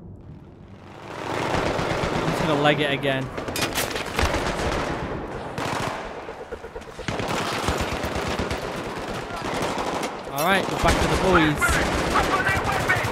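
Gunshots crack rapidly.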